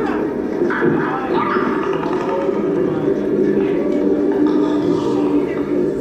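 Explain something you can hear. A woman talks with animation.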